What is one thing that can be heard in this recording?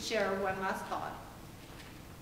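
A woman speaks into a microphone in a large room.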